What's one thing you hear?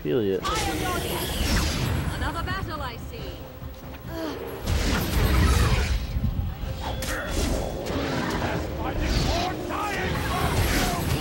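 Magic spells burst with whooshing blasts.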